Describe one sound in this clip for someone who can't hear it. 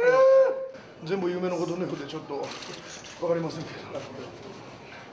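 A man talks hoarsely and close by.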